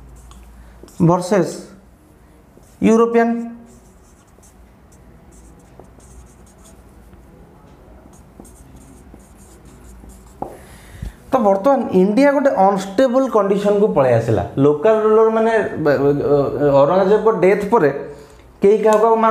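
A man speaks in a steady lecturing voice, close by.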